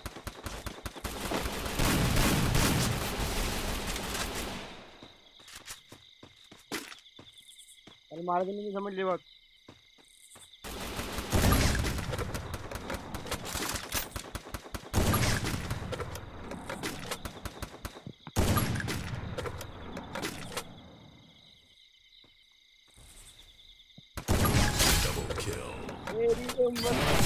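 Rifle shots bang loudly, one at a time, with pauses between them.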